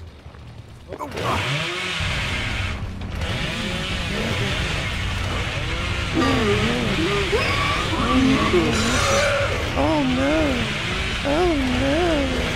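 A chainsaw revs and roars loudly.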